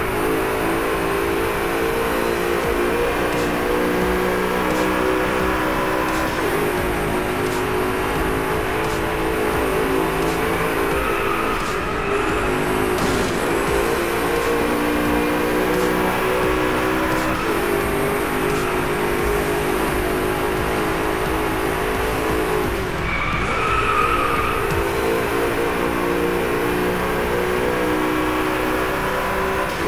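A car engine hums steadily while driving at speed.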